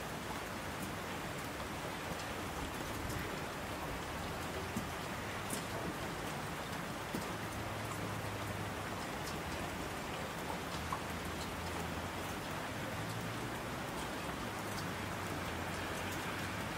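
Mountain streams rush and roar.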